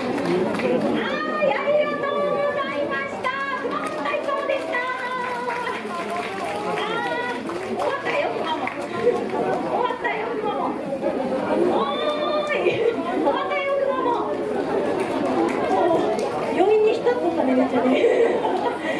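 A young woman speaks with animation through a microphone and loudspeakers.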